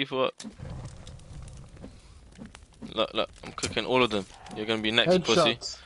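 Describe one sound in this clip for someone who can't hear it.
A small fire crackles.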